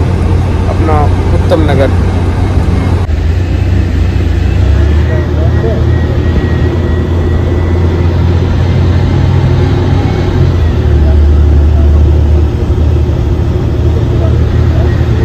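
A car engine hums and rumbles low and steady from inside the moving car.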